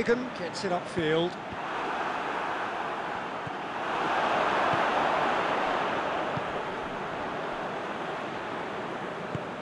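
A stadium crowd roars steadily, swelling and then easing off.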